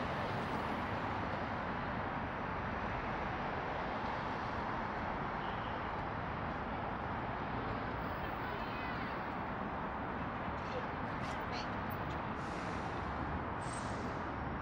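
Electric scooters whir past close by.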